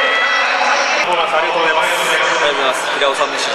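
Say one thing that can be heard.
A young man speaks into a microphone, close by, outdoors.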